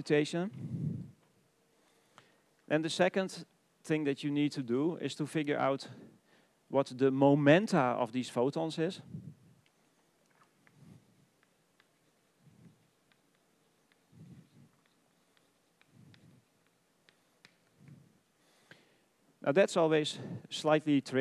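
A man lectures through a headset microphone, speaking calmly with pauses.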